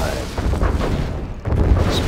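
Tank cannons fire in quick bursts.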